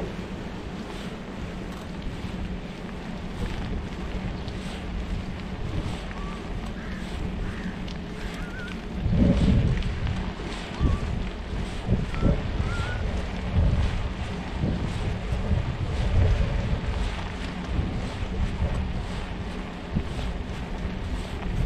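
Wind buffets the microphone in low, rumbling gusts.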